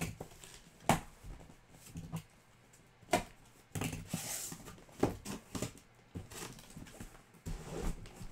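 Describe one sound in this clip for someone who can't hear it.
Cardboard rustles and scrapes as a box is opened by hand.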